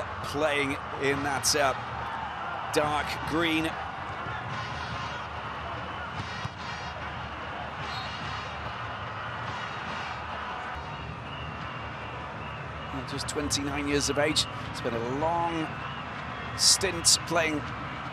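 A large stadium crowd murmurs and hums steadily.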